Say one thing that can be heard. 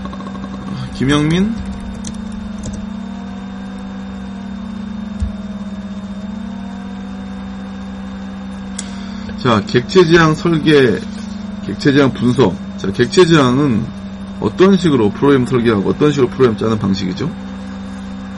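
A man speaks calmly into a microphone, lecturing.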